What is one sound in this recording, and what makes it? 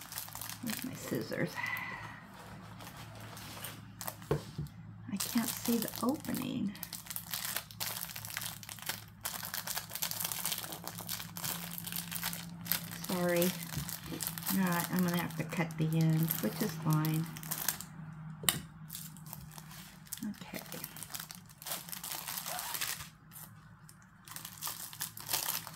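Plastic packaging crinkles and rustles as it is handled.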